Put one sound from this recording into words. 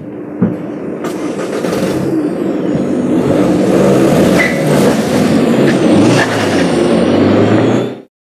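A car engine hums as the car drives slowly away.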